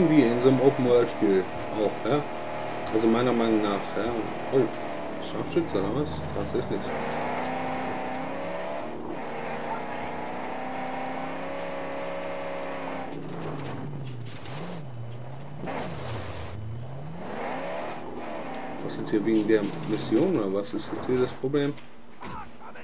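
A car engine roars and revs, rising and falling in pitch as it drives over sand.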